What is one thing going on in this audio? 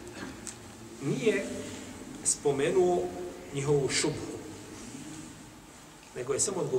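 A man speaks slowly and calmly into a close microphone.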